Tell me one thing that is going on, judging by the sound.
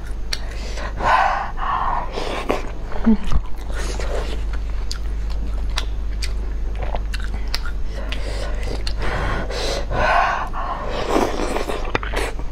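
A young woman slurps noodles loudly, close up.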